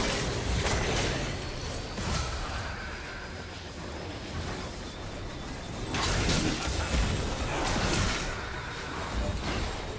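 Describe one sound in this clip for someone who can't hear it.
Game spell effects whoosh and crackle in bursts during a fight.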